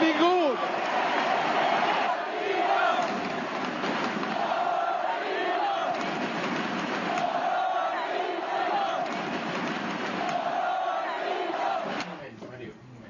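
A large stadium crowd chants and cheers loudly.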